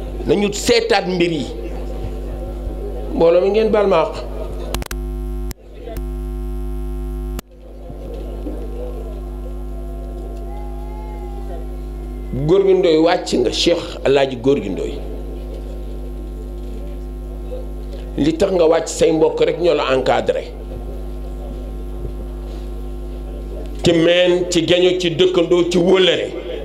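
A middle-aged man speaks with animation into a microphone through loudspeakers, in short bursts with long pauses.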